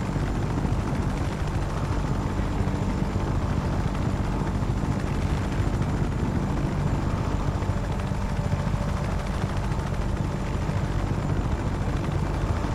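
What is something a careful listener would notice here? Helicopter rotor blades thump steadily and loudly.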